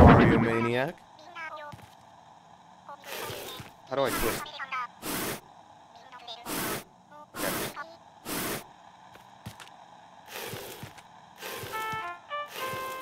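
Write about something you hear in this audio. Music plays from a small radio.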